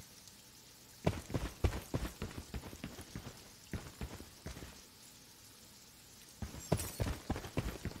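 Footsteps crunch steadily on a hard rooftop.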